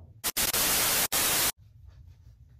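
Loud television static hisses.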